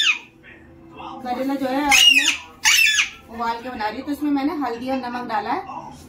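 A middle-aged woman talks to a parrot close by in a coaxing voice.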